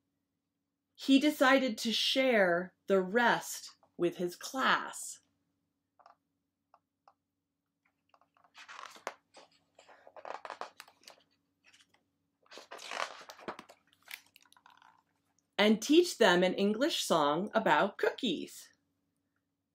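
A middle-aged woman reads aloud close by, calmly and with expression.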